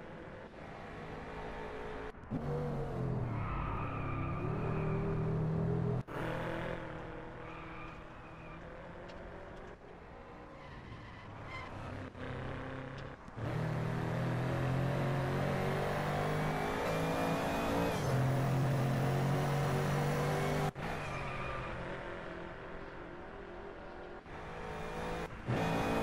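A car engine roars and revs, rising and falling in pitch.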